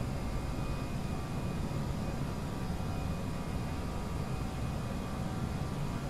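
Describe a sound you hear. Jet engines roar steadily as an airliner speeds down a runway.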